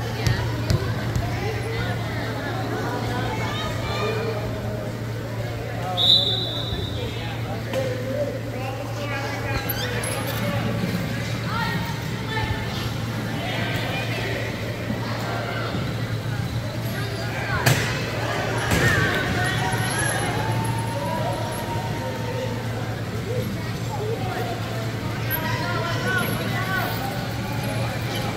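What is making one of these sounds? Electric wheelchairs whir as they drive across the floor.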